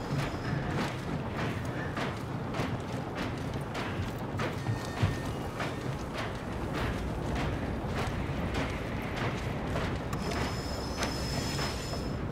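Footsteps thud steadily on a hard floor.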